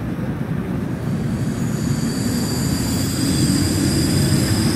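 A train's electric motors whine and rise in pitch as it pulls away.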